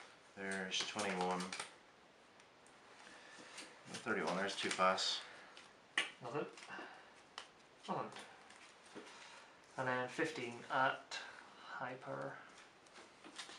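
A deck of playing cards is shuffled by hand.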